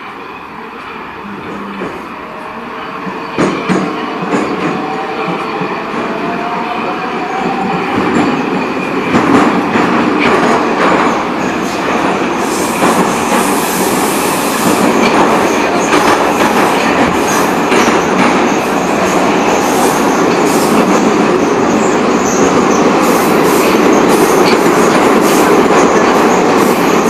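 A subway train rumbles and roars as it speeds through a tunnel.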